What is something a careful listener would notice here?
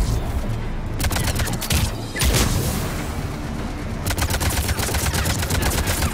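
Rapid gunfire crackles in sharp bursts.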